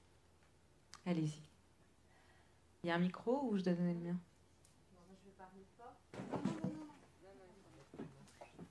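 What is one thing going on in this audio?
A young woman speaks into a microphone in a calm, questioning tone.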